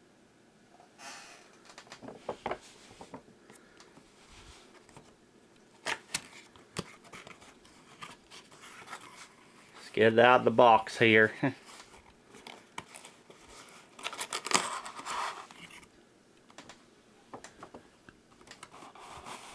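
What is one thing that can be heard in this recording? A cardboard box rustles and scrapes as a hand handles it close by.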